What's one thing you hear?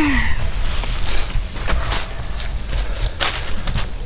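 A shovel scrapes into soil.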